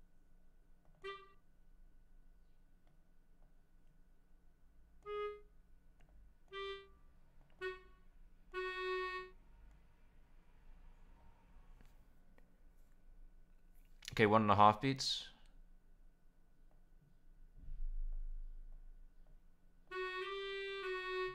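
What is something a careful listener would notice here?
A synthesizer plays short single notes, one at a time.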